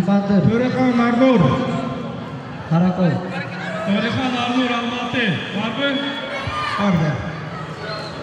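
A man shouts loudly nearby.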